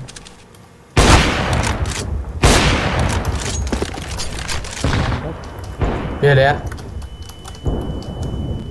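Rifle shots crack sharply several times.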